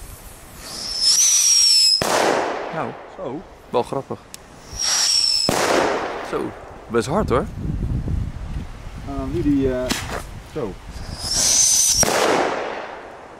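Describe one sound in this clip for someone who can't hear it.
Ground fireworks shriek and hiss outdoors as they burn.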